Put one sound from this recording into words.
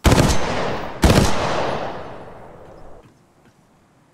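A gun fires two loud shots that boom and echo away.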